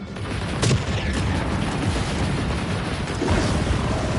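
Laser blasts fire with sharp zaps.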